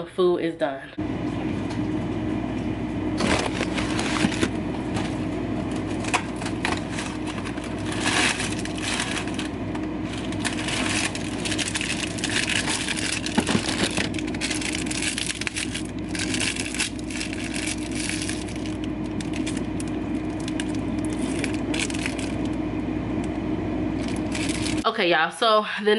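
A refrigerator hums steadily.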